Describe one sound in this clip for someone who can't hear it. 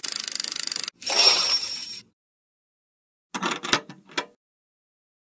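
An electronic chime jingles for a win.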